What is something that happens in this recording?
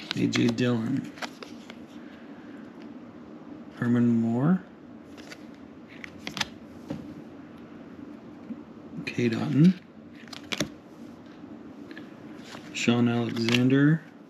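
Trading cards are handled and slide against each other.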